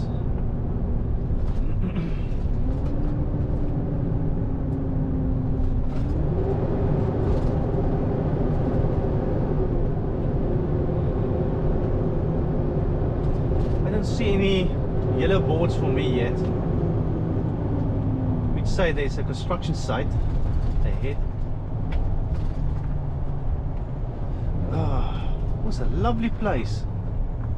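A truck's diesel engine drones steadily from inside the cab, rising and falling in pitch as it pulls.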